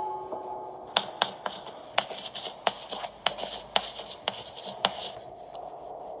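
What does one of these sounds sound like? Chalk taps and scratches quickly on a blackboard.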